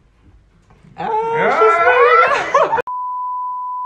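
Young men laugh loudly and shout close by.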